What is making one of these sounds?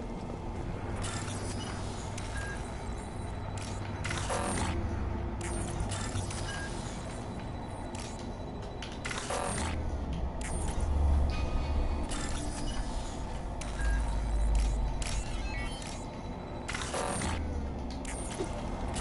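Electronic chimes and clicks sound in quick bursts.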